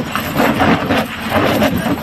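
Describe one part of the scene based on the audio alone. A steel tyre chain rattles as it is dragged over snow.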